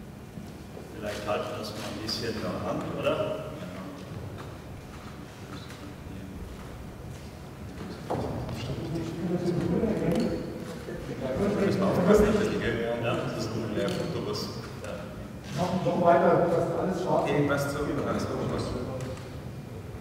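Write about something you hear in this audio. A man talks through a microphone in a reverberant hall.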